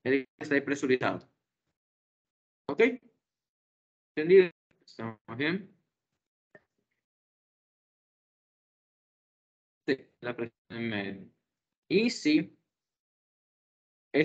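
A young man speaks calmly through an online call, in short bursts with pauses.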